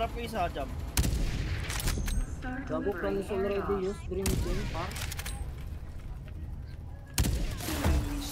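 A sniper rifle fires single shots in a video game.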